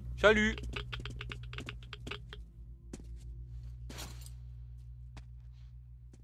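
Footsteps tread quickly on a hard floor.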